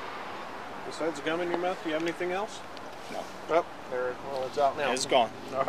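A man speaks close by, calmly.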